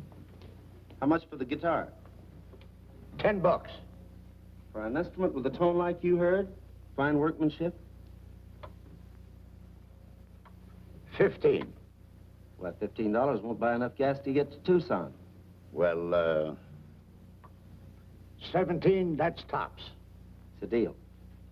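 An older man answers calmly.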